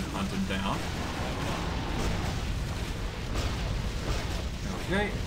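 Magic blasts crackle and whoosh in quick bursts.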